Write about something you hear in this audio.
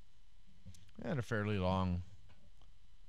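A middle-aged man speaks briefly into a close microphone.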